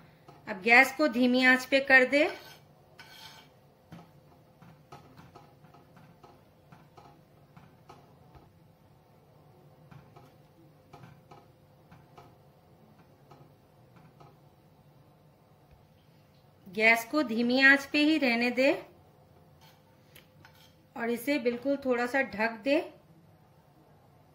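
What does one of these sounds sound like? A spoon stirs and scrapes gently in a clay pot of liquid.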